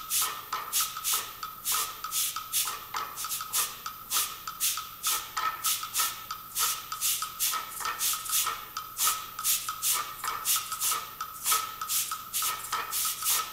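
Shakers rattle in a steady, quick rhythm.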